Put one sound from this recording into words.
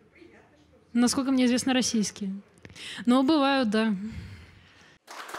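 A young woman speaks into a microphone in a calm, friendly voice.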